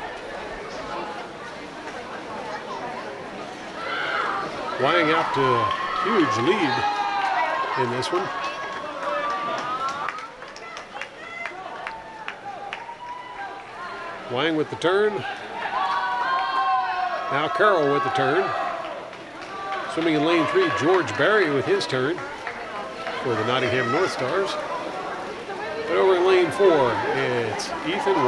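Swimmers splash through water.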